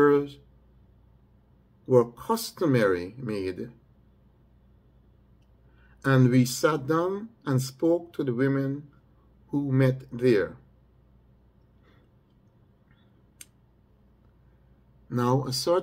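An older man speaks calmly and slowly, in short phrases with pauses, heard close through a microphone on an online call.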